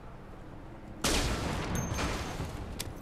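A gunshot bangs loudly with a short echo.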